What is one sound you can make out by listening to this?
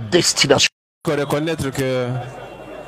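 A group of young women and men sing together through a microphone.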